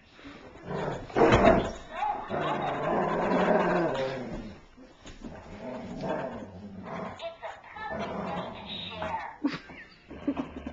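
Two large dogs growl while tugging a plush toy.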